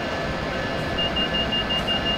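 A warning alarm beeps rapidly in the cab.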